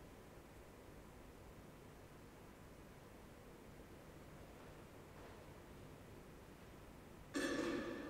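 Footsteps shuffle faintly in a large echoing hall.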